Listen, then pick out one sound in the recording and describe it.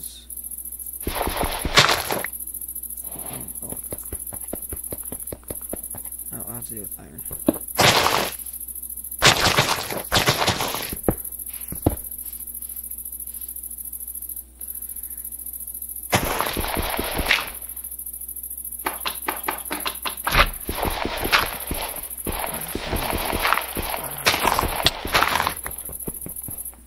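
Blocks crunch and thud as they are broken and dug out.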